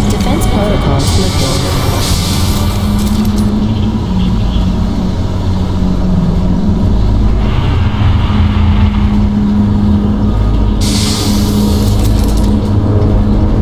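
A jet thruster roars in short hissing bursts.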